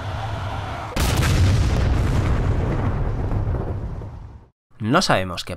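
A huge explosion booms and roars, then fades.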